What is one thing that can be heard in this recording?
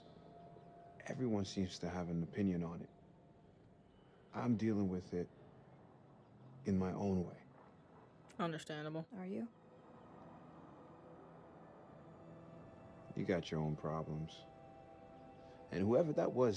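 A young man speaks calmly and quietly.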